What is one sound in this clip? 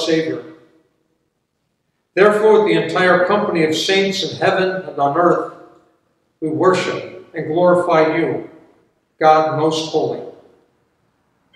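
An elderly man speaks calmly in an echoing hall, pausing between phrases.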